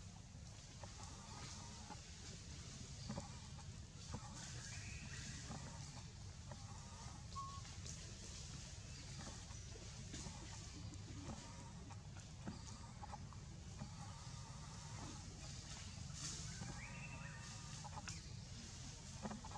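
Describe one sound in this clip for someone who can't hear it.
Leaves rustle softly as a monkey moves on a tree trunk.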